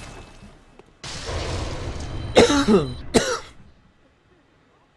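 A loud whooshing burst rings out.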